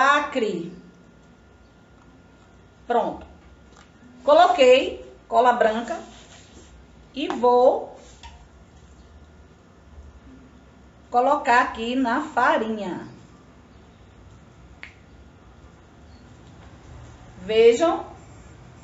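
A middle-aged woman talks calmly and close by, in short bursts.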